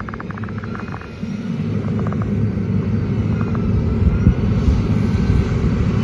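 A grader's diesel engine rumbles steadily nearby.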